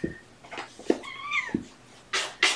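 A kitten mews softly.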